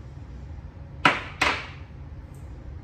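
A plastic tub knocks twice against a glass tabletop.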